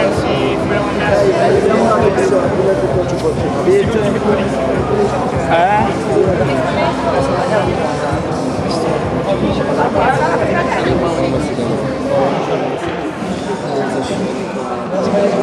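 A crowd of young people chatters loudly nearby in an echoing hall.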